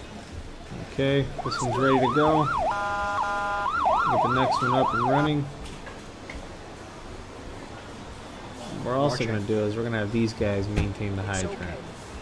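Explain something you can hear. A fire engine siren wails loudly.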